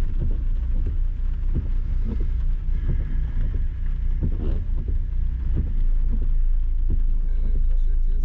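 Windshield wipers swipe across the glass.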